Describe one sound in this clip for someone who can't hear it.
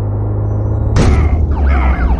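A vehicle crashes into a truck with a loud bang.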